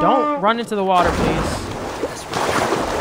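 Water splashes loudly as a body plunges in.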